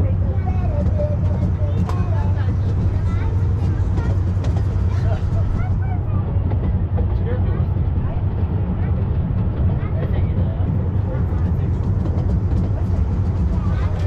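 An open train rumbles steadily along a track.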